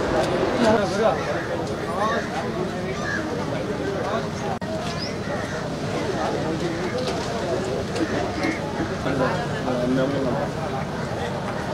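A large crowd of men and women chatters and murmurs all around.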